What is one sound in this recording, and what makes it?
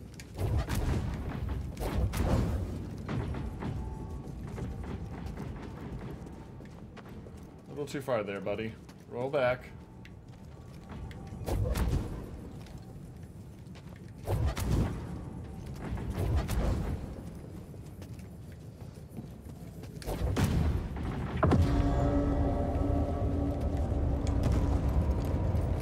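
Quick footsteps run over a stone floor.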